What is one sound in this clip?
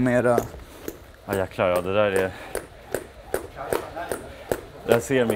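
A jump rope slaps the floor in a quick, steady rhythm.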